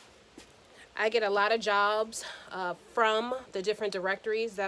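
A woman speaks calmly and clearly, close to a microphone.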